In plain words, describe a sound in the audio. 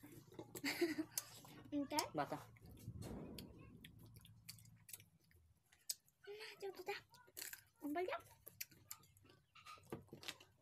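Food crunches and clicks.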